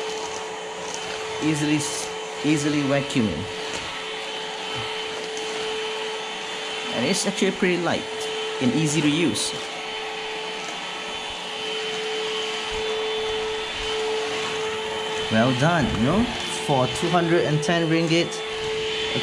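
A cordless vacuum cleaner hums steadily as it sweeps across a hard floor.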